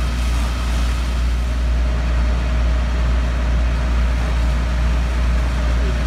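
Fire engines idle nearby with a steady rumble.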